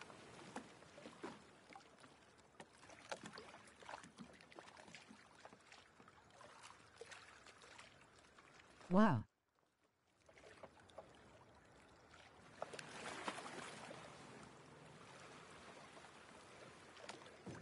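Water laps gently against the hull of a small boat.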